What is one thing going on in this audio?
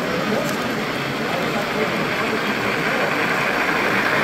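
A model steam locomotive hisses and chuffs as it passes close by.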